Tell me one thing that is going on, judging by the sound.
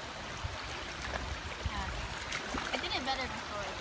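Water splashes as a young woman wades and dives in.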